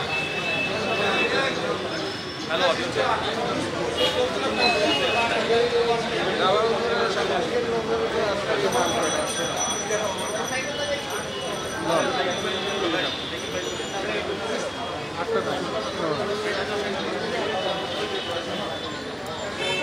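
A crowd murmurs and chatters nearby.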